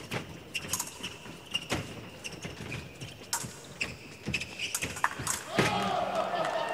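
Fencers' shoes tap and squeak on a hard floor.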